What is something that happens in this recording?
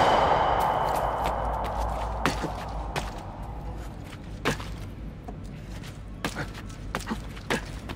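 Footsteps land and scuff on stone.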